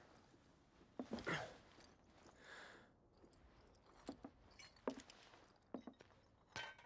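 Boots step and thud on a hard floor.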